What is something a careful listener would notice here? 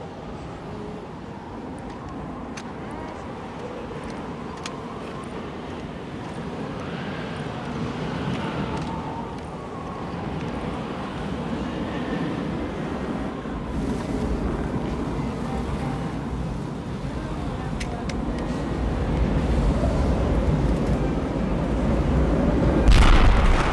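A strong wind howls through a snowstorm.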